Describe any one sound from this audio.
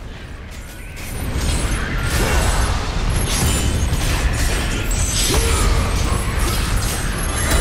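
Blades slash and strike in a fierce fight.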